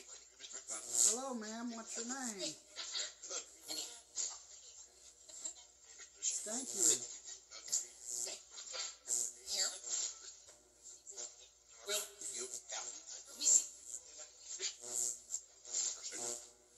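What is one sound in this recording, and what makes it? A radio broadcast plays through a small tablet loudspeaker.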